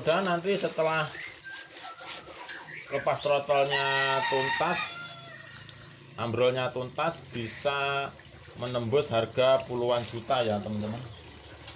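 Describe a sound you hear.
Water splashes and sloshes as a hand stirs it.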